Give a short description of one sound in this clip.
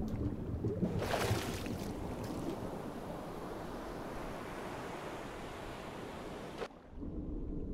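Water splashes and sloshes at the surface.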